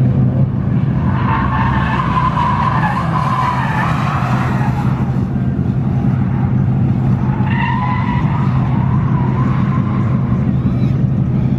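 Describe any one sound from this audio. Tyres screech on pavement.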